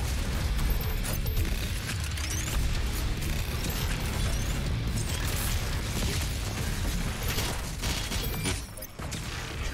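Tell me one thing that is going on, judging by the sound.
Heavy guns fire in rapid bursts.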